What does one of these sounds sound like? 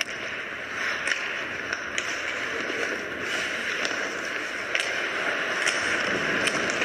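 Ice hockey skates scrape and carve across ice.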